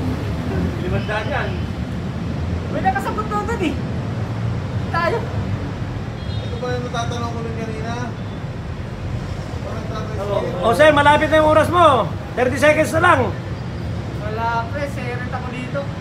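A man speaks through a face mask, close by, in short bursts as if reading out.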